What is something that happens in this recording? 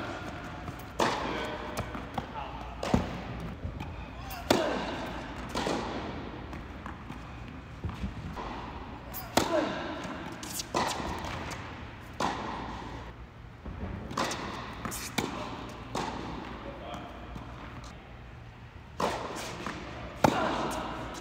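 Tennis balls bounce on the court.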